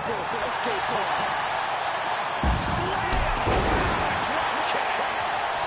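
A large crowd roars and cheers steadily.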